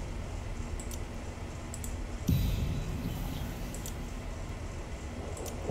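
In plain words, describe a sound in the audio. Soft game interface clicks sound as menus open and close.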